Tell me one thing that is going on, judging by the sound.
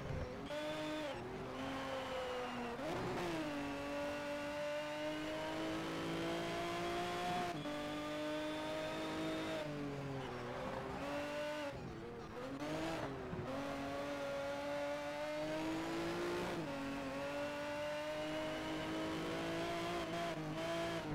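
A race car engine roars at high speed, rising and falling in pitch as it shifts gears.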